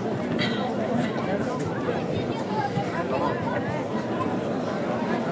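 A middle-aged man speaks formally into a microphone over loudspeakers outdoors.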